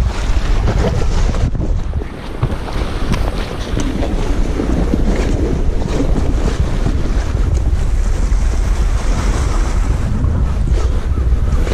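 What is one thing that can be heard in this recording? Wind buffets and roars steadily outdoors.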